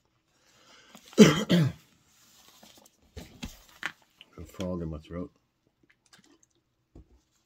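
An older man drinks from a plastic water bottle.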